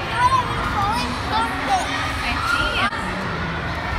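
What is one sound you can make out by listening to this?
Young children shriek and squeal with high voices nearby.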